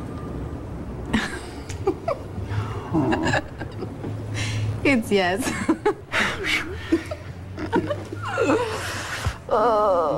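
A young woman laughs happily close by.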